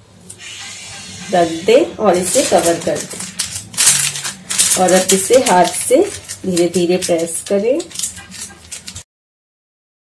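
A plastic sheet crinkles under pressing hands.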